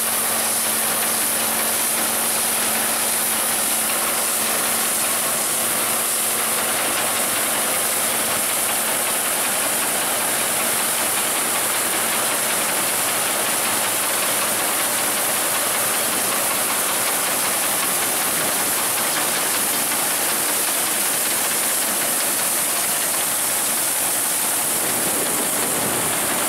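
A reaper's blades and reel clatter and rattle through standing wheat.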